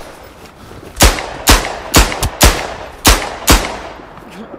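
A pistol fires several sharp shots, echoing off close walls.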